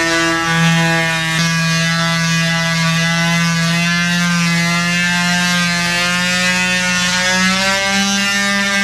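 An electric sander buzzes steadily as it sands a surface.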